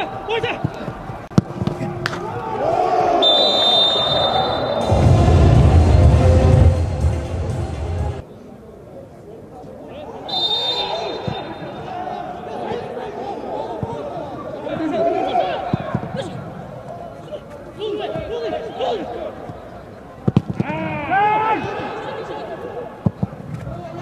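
A football is kicked hard with a sharp thud.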